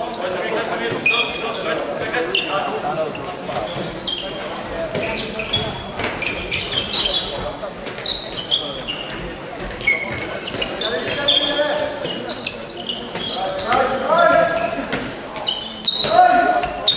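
Players' shoes squeak sharply on a hall floor.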